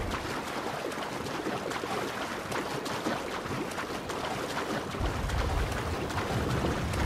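Water splashes steadily as a swimmer strokes through the sea.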